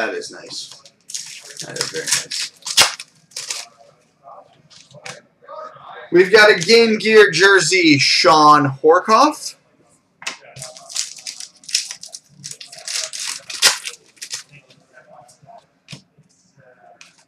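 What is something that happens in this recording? Plastic card sleeves rustle and crinkle.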